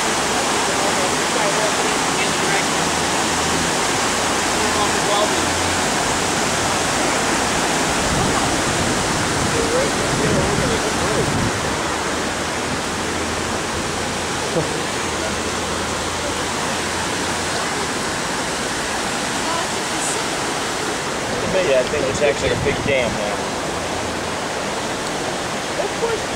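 Floodwater rushes and churns steadily.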